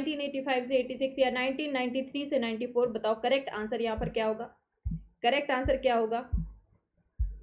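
A young woman speaks clearly and steadily into a close microphone.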